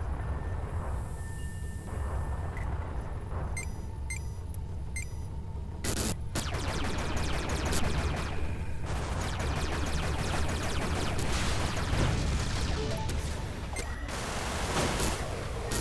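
A spaceship engine hums and roars steadily.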